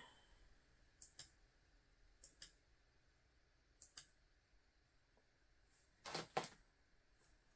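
Plastic clicks as a man handles a small device.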